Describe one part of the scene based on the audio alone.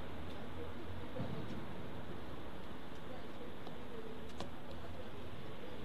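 Street traffic hums in the distance.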